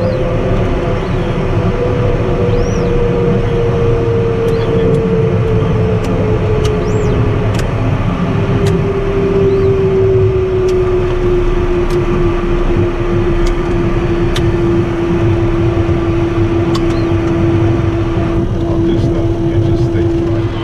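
An aircraft engine drones steadily with a slowly falling pitch.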